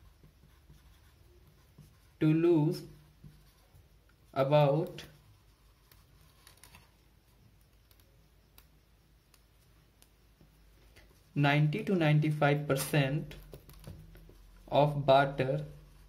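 A felt-tip marker scratches softly across paper.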